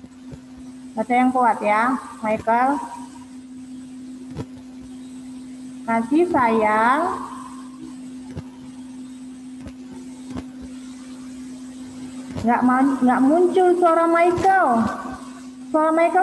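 A young child speaks with animation over an online call.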